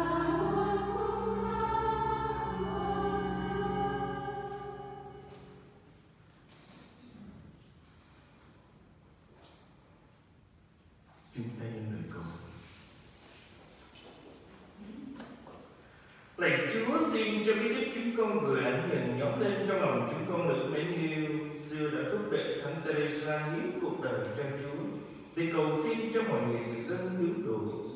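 A congregation sings together in an echoing hall.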